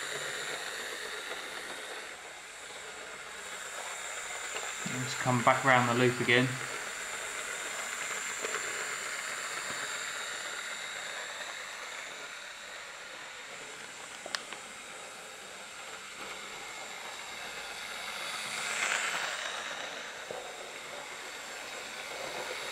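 A small electric model locomotive whirs steadily as it rolls along metal track.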